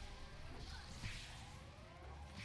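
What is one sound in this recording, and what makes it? An electric blast crackles and booms.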